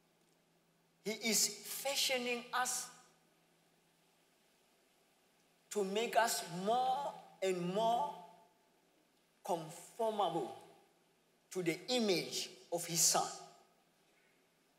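A young man speaks with animation through a headset microphone, in bursts with pauses.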